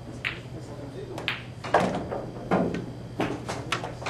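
A cue sharply strikes a billiard ball.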